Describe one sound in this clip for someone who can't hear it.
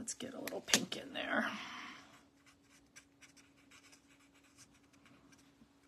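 A marker scratches softly on paper.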